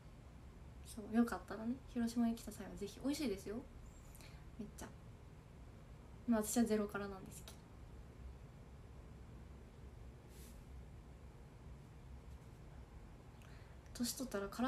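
A young woman speaks softly and calmly close to a microphone, with pauses.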